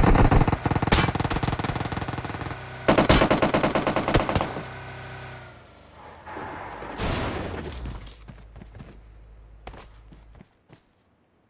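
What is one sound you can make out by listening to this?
A car engine revs at speed.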